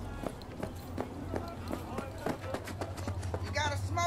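Footsteps patter steadily on pavement.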